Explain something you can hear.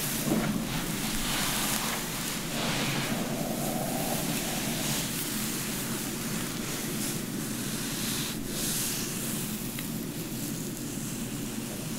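Hands rustle and brush through hair close by.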